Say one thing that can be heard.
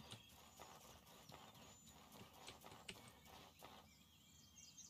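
Footsteps rustle through grass and undergrowth.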